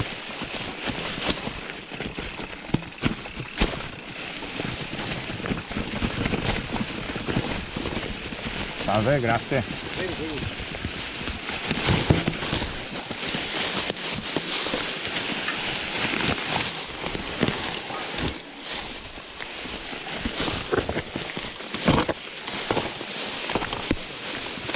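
A bicycle rattles and knocks over bumps.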